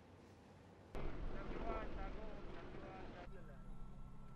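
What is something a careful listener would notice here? A helicopter's rotor thuds as it flies past.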